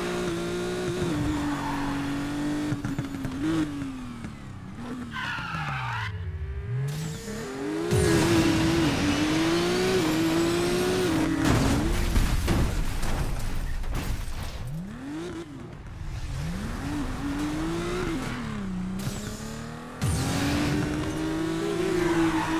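A racing car engine roars, revving up and down.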